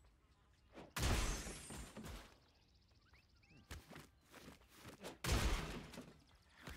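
Game sound effects burst with a loud magical whoosh and sparkle.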